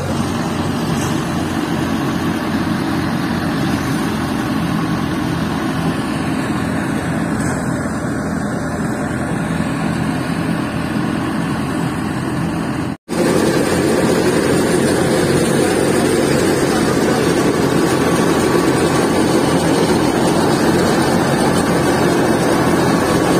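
A threshing machine rumbles and whirs steadily outdoors.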